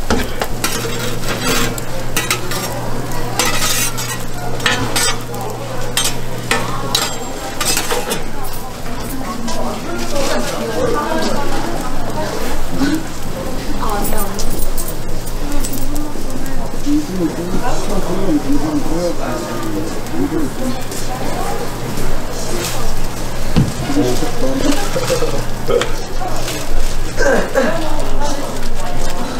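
Food sizzles steadily on a hot griddle.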